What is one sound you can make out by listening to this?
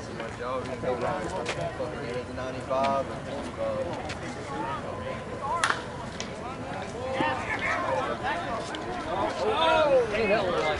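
Several young men and women shout and cheer from a distance outdoors.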